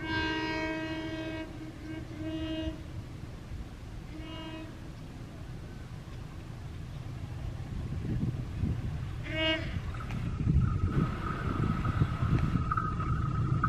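A diesel locomotive rumbles as it approaches, growing louder.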